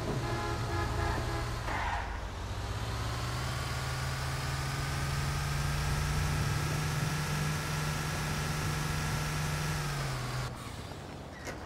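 A bus engine hums steadily and rises in pitch as the bus drives.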